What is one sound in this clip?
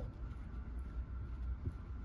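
A knife scrapes softly as it spreads a spread.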